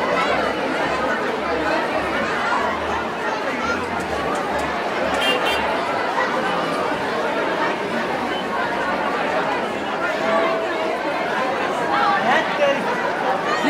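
A large crowd of young men and women chatters and shouts excitedly outdoors.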